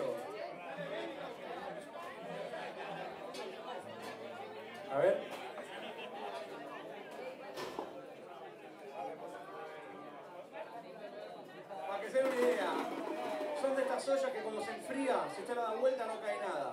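An electric guitar plays.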